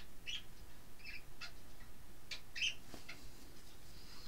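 Fabric rustles as it is handled.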